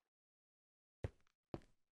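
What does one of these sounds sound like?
Lava pops and gurgles.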